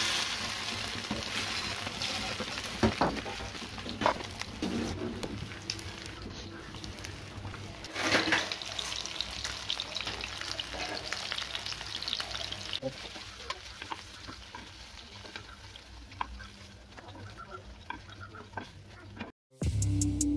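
Fish sizzles and crackles as it fries in hot oil.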